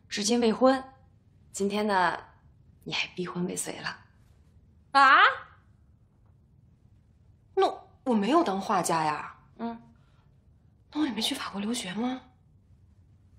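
Another young woman exclaims in surprise and questions, close by.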